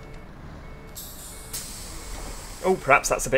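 Bus doors open with a hiss.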